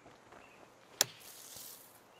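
A golf club strikes sand with a sharp thwack.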